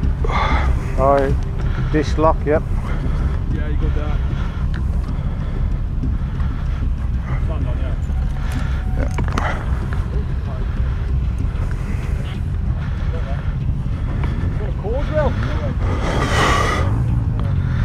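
Men talk nearby in relaxed voices.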